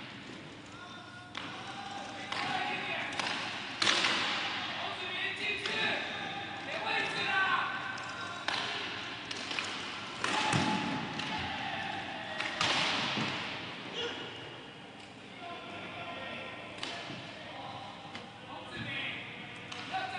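The play echoes in a large indoor hall.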